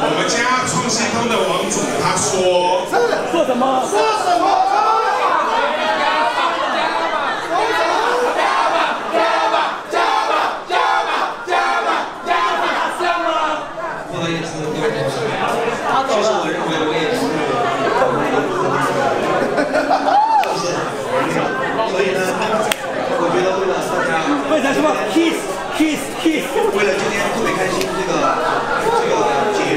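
A crowd of voices murmurs and chatters in a large echoing room.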